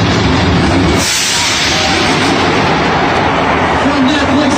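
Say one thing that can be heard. Pyrotechnic jets burst with a loud hissing whoosh.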